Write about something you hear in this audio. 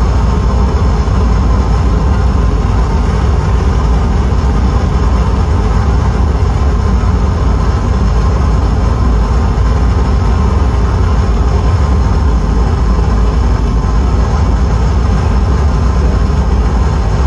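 Loud droning electronic synthesizer music plays with a deep rumbling bass.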